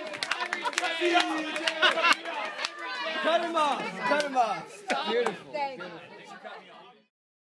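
A crowd of young men and women cheer and shout excitedly.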